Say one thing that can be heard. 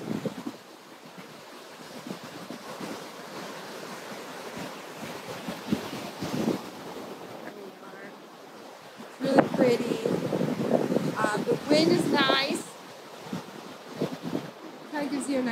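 Waves break and wash onto a beach.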